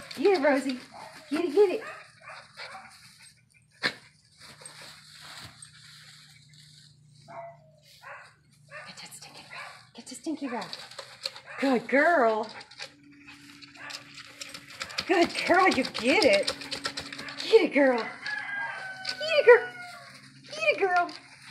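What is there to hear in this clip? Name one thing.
Dogs rustle and scuffle through dry straw.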